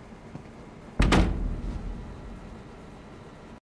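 A deep thud with a rushing whoosh sounds and slowly fades.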